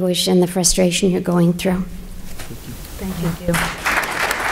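A woman speaks into a microphone in a room with a slight echo.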